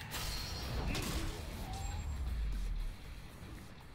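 Heavy punches land with loud thuds.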